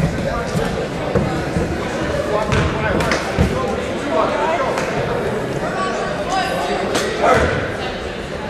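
A man speaks firmly to a group of players nearby.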